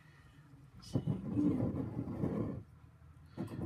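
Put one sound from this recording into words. A ceramic mug scrapes and turns on a hard countertop.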